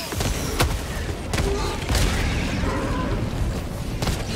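A large explosion booms with a deep rumble.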